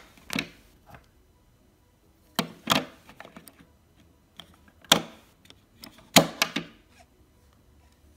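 Batteries click into a plastic holder.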